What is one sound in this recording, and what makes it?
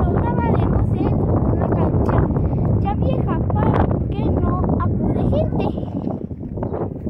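A young boy speaks close by, with a pleading voice.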